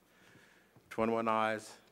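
An older man answers calmly into a microphone.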